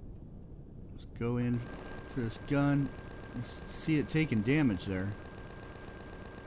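Rocket engines roar steadily.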